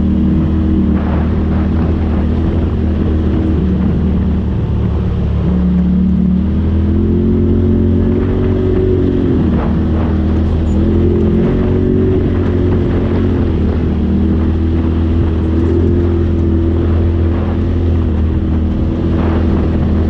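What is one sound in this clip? An off-road vehicle's body rattles and knocks over bumps.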